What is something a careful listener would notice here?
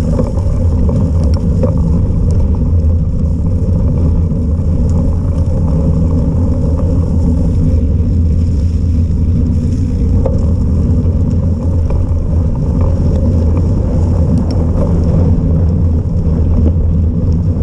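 Tyres roll steadily on a wet paved path.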